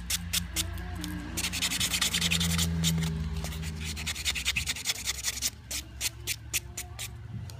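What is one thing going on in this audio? A buffer block scrubs rapidly back and forth across a fingernail.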